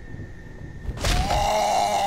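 A heavy blow strikes flesh with a thud.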